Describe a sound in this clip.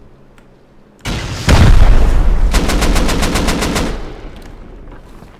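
An explosive blasts with a loud, deep boom that rumbles and slowly fades.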